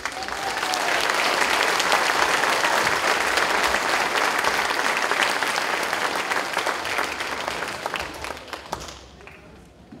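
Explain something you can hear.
An audience claps and cheers loudly in a large hall, then the applause dies away.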